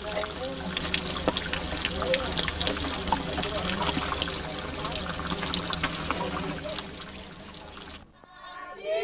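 Water trickles steadily from a spring spout.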